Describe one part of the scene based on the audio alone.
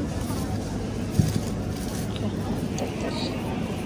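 A mesh bag of onions rustles as a hand picks it up.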